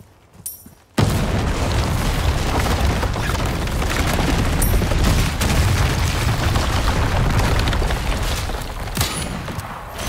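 A loud explosion booms and rumbles on, then fades.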